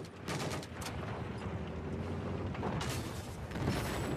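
A heavy machine gun fires in bursts.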